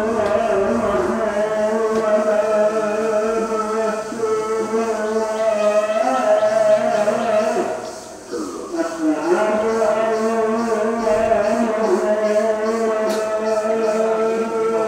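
An elderly man chants in a long, drawn-out melodic voice through a microphone and loudspeakers.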